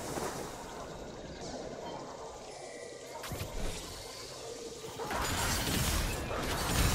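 Game spells and blows crackle and clash in a fast fight.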